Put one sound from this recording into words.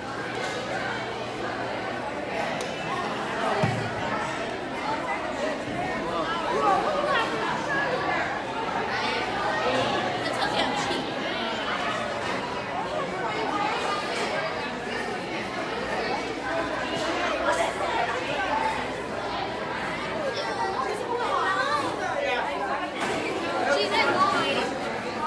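A crowd of children and adults chatters loudly in a large echoing hall.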